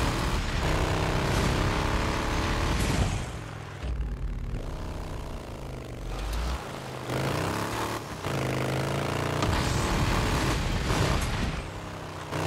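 A motorcycle engine revs and roars steadily, rising and falling in pitch.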